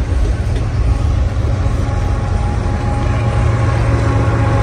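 A locomotive engine drones loudly as it approaches.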